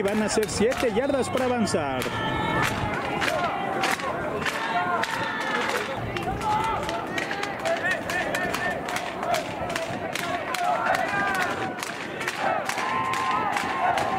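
A crowd of young men shouts and chatters outdoors in the distance.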